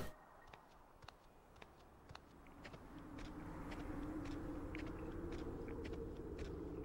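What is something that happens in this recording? Soft footsteps pad slowly across the ground.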